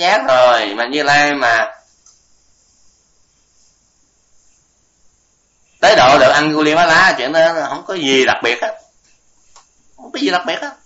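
An elderly man speaks calmly into a microphone, with short pauses.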